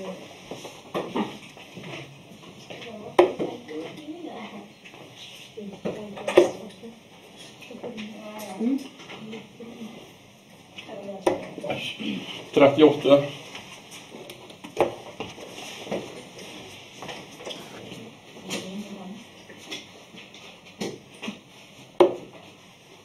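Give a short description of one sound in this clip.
Darts thud sharply into a dartboard one after another.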